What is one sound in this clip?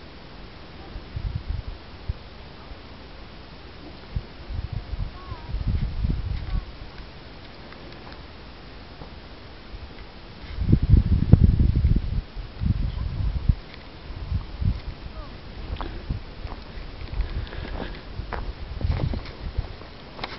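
Wind gusts across open ground, rumbling against the microphone.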